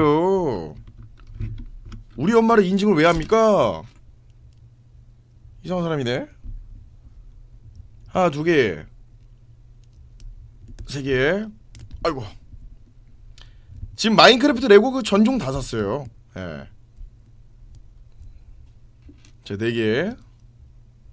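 A young man talks casually into a nearby microphone, in short bursts.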